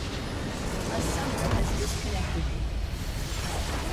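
A structure in a video game explodes with a deep rumble.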